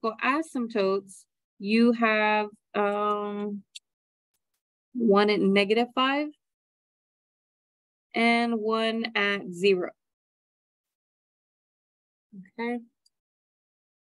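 A woman speaks calmly through a microphone, explaining in short phrases with pauses.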